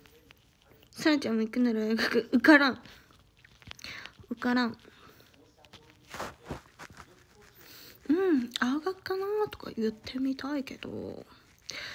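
A young woman talks softly and expressively close to the microphone.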